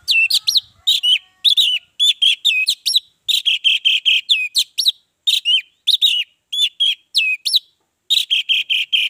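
An orange-headed thrush sings sharp, whistled phrases in quick bursts.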